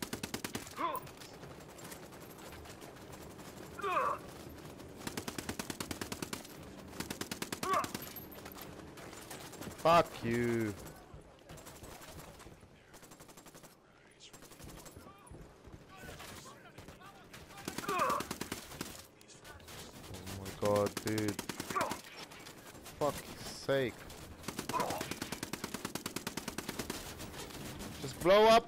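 A helicopter's rotor thumps overhead.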